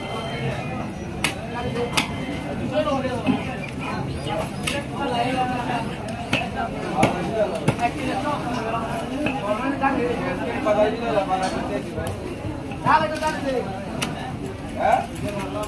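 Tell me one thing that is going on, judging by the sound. A knife scrapes scales off a fish.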